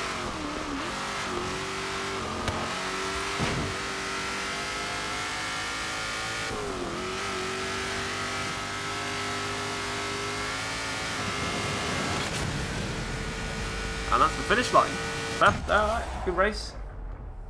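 A race car engine roars at high speed, rising and falling in pitch.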